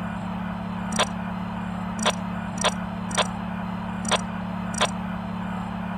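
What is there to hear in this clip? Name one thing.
Short electronic chimes ring out several times.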